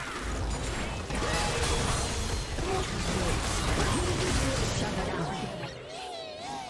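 Game spells crackle and burst in a fast fight.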